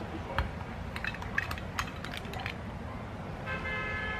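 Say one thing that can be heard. A metal scoop scrapes ice cream into a plastic cup.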